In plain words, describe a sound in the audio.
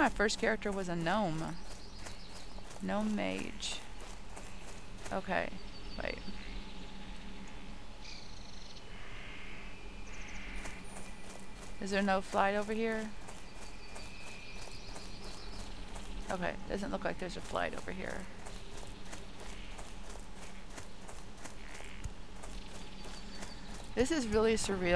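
Footsteps patter softly and steadily on a path.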